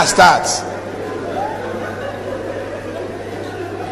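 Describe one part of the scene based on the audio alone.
A crowd laughs in a large room.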